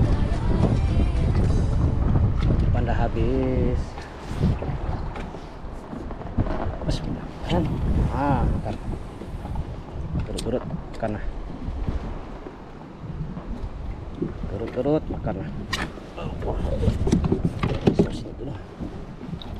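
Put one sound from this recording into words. Water laps against the hull of a small boat.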